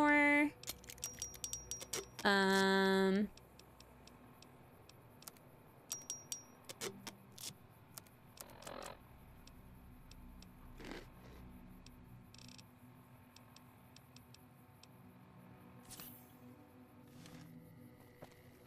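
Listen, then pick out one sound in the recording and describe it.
Soft clicks tick quickly as a game menu is scrolled.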